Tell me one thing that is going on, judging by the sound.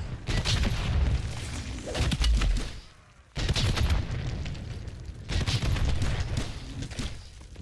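A heavy gun fires loud rapid bursts with deep booms.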